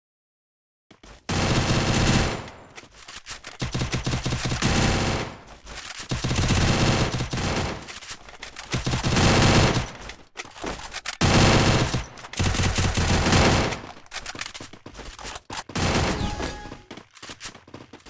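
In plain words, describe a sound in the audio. Automatic guns fire in loud, rapid bursts.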